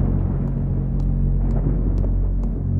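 A man's shoes tap across a tiled floor.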